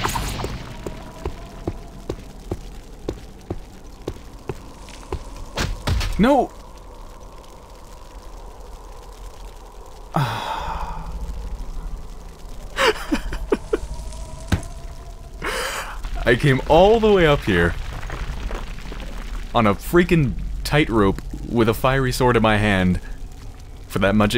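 A fiery sword crackles and hums steadily.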